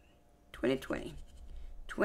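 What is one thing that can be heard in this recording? A coin scratches across a paper card.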